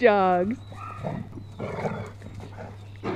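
A dog growls playfully.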